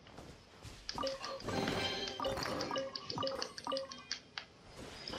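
A video game treasure chest opens with a bright, sparkling chime.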